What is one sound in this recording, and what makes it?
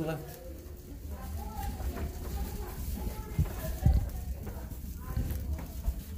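Footsteps fall on a carpeted floor.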